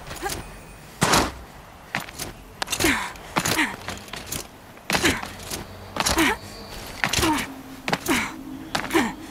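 Hands grab and scrape on rock while climbing.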